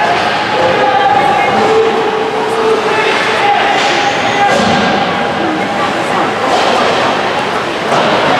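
A crowd of spectators chatters in a large echoing arena.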